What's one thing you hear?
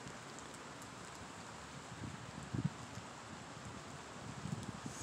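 Light rain falls steadily outdoors.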